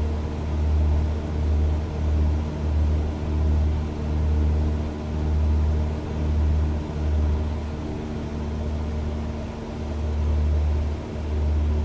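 A small propeller aircraft engine drones steadily, with a low throbbing pulse.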